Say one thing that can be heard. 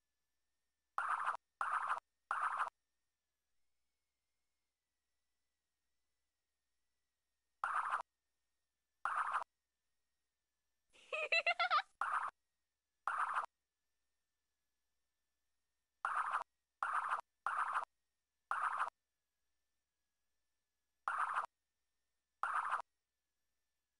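A drawing program plays short brush sound effects as strokes are painted.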